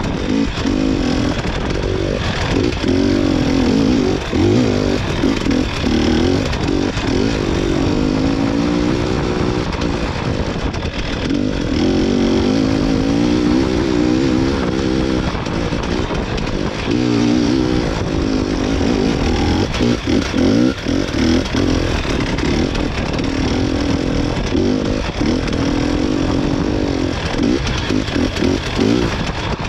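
A small engine revs up and down as a vehicle drives over rough ground.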